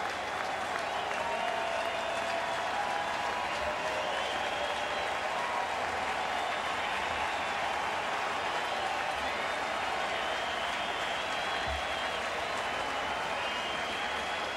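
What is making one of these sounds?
Fans clap their hands.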